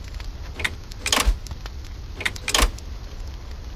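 A game menu makes short whooshing sounds as it changes.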